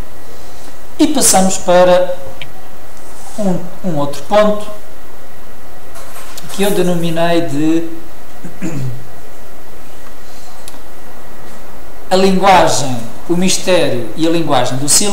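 A middle-aged man speaks calmly in short phrases, close by.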